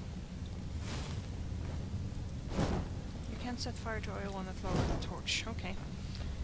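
A magic fire spell whooshes and bursts with a crackling blast.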